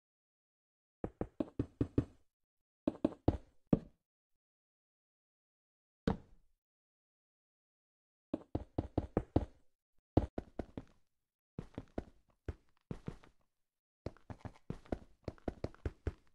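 Blocks are placed one after another in a block-building game, each with a short soft thud.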